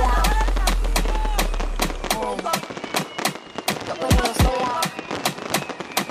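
Fireworks whistle and screech with quick wavering tones.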